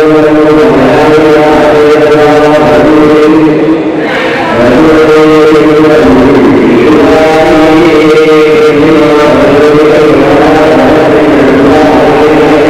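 A man chants steadily in a low, sing-song voice.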